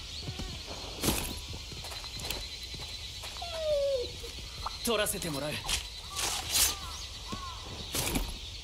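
Blades slash and strike with sharp whooshing hits.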